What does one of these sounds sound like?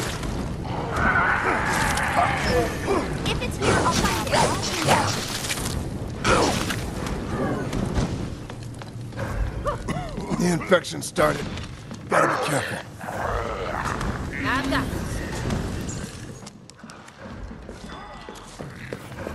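Flames roar and crackle in bursts.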